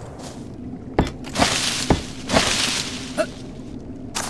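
A wooden wall is torn down with sharp knocks and rustling.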